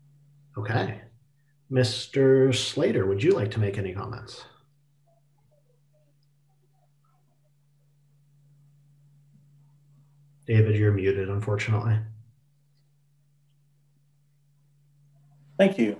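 A man talks calmly over an online call, in short bursts.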